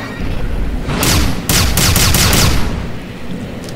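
A gun fires a rapid burst of sharp electric zaps.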